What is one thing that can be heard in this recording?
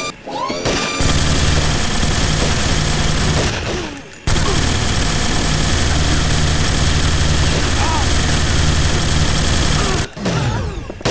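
An automatic rifle fires long, rapid bursts of shots.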